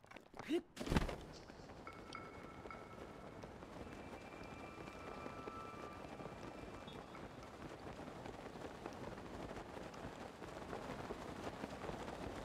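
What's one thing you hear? Wind rushes steadily past during a glide.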